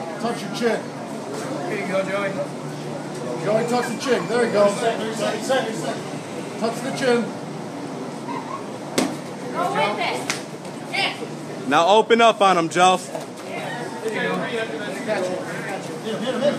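Kicks and punches thud against padding.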